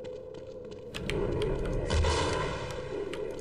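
A large creature growls and roars.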